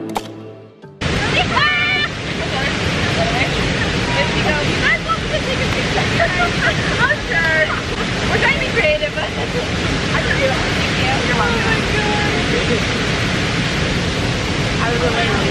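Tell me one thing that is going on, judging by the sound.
A waterfall rushes steadily nearby.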